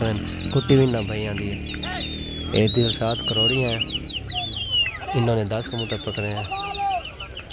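A group of men shout and call out outdoors.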